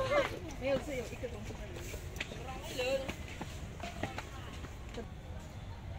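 A monkey's feet rustle and patter on dry leaves and gravel.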